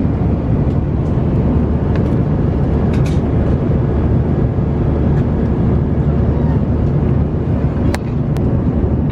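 A plastic coat hanger rattles against a seat pocket.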